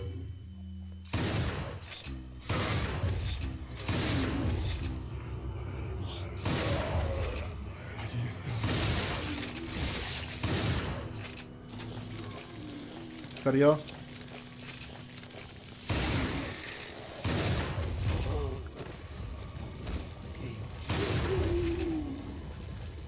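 Monks groan and moan menacingly.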